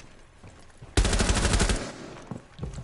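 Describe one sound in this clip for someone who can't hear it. A gun fires a rapid burst of shots.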